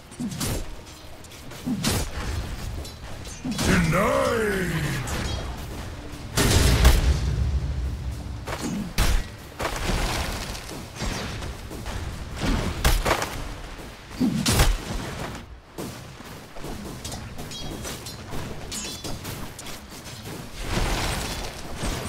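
Magic blasts and weapon strikes crash and whoosh in a fantasy battle.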